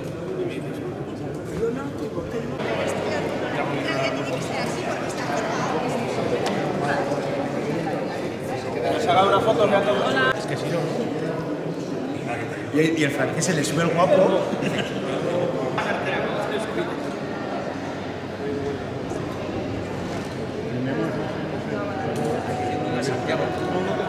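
A crowd of men and women chat nearby.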